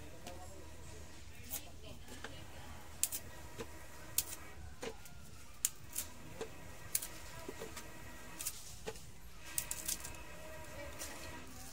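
Banana stems crack as they are pulled apart.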